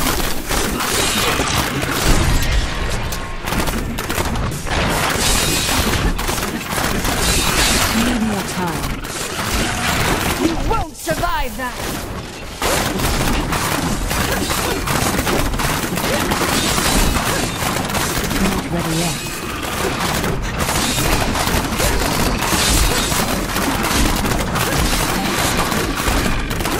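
Magic blasts and explosions crackle and boom in quick succession.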